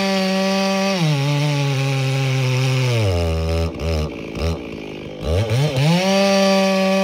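A two-stroke chainsaw drops to idle and revs back up.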